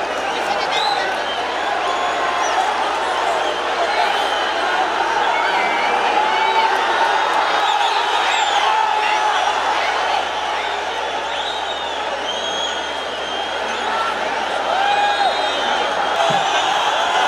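A large stadium crowd cheers and roars outdoors.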